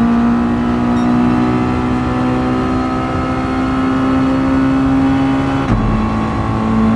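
A race car engine roars at high speed, its pitch climbing slowly.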